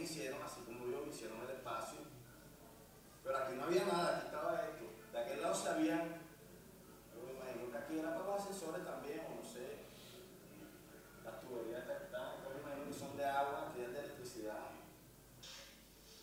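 A man speaks calmly, heard through a loudspeaker.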